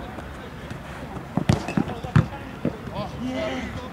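A football is kicked hard.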